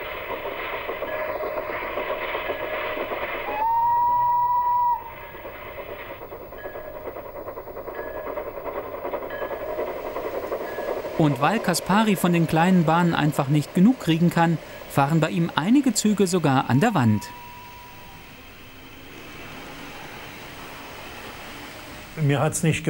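A model train rumbles softly along its track.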